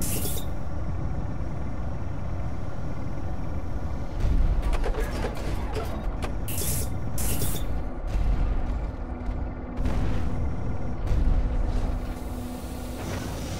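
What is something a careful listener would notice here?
Heavy mechanical footsteps thud and clank steadily.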